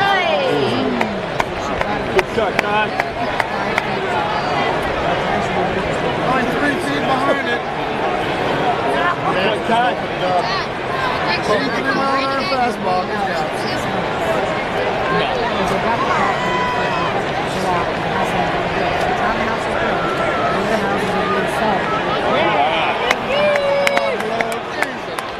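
Nearby spectators talk with animation.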